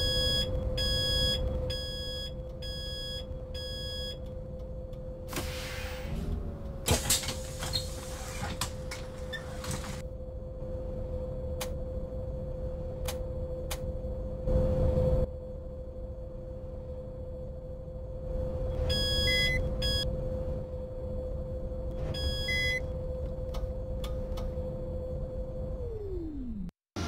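A bus engine idles with a steady hum, then winds down and stops.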